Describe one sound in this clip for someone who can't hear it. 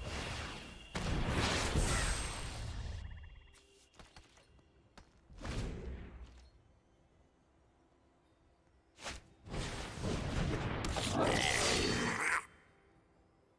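Digital game chimes and whooshes sound as cards are played.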